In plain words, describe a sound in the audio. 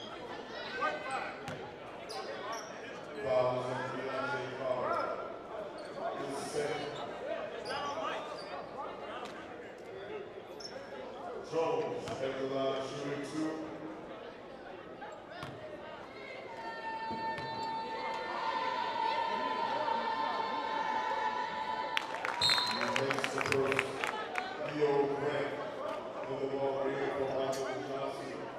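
A crowd of spectators chatters and calls out in an echoing hall.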